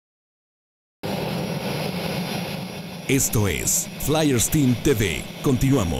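A jet engine hums steadily nearby.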